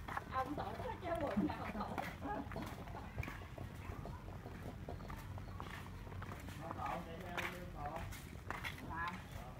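Sandals scuff on the ground with footsteps.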